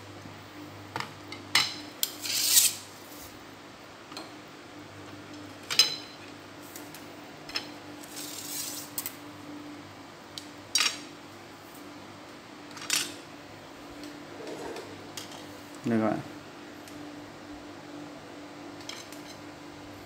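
Fishing rod sections clatter and tap against one another on a wooden table.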